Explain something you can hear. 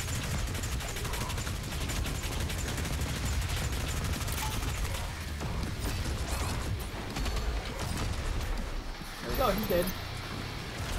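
Monsters growl and screech.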